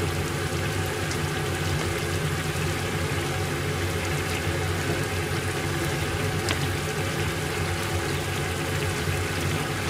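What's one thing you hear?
A pot of stew simmers and bubbles steadily.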